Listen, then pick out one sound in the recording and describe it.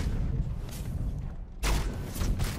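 A fiery blast roars and rumbles with a deep boom.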